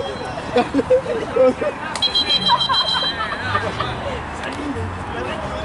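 Young men shout and call out to each other on an outdoor field.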